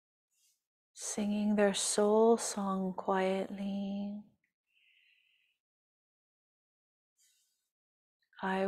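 A woman chants in long, held tones, heard through an online call.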